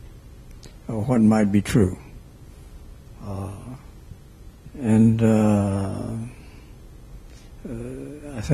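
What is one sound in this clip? An elderly man speaks slowly into a microphone in an echoing hall.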